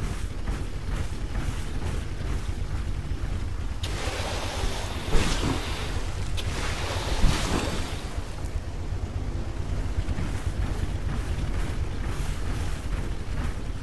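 A heavy mechanical walker stomps along with thudding metal footsteps.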